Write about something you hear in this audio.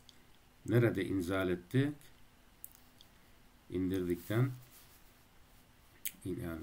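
A man speaks calmly and slowly into a close microphone.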